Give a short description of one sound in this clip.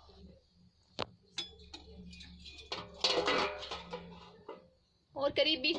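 A metal lid clanks against a metal pot.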